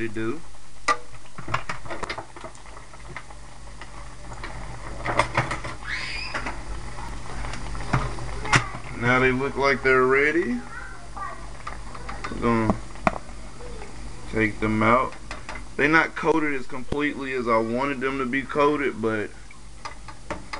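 Hot oil sizzles and bubbles steadily.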